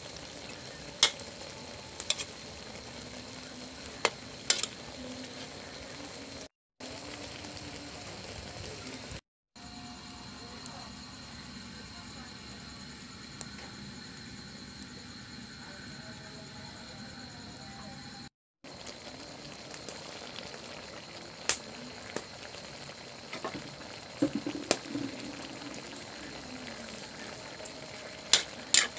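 A metal spatula clinks against a pan.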